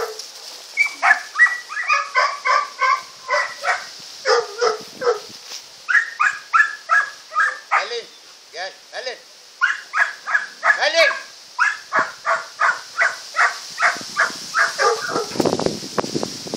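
Chickens cackle loudly and repeatedly nearby.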